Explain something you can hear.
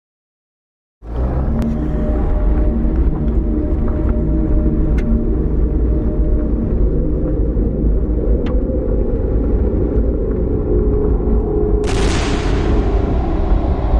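Tyres crunch and rumble on a gravel road.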